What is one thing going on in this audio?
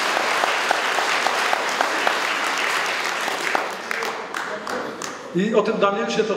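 A large crowd applauds in a big hall.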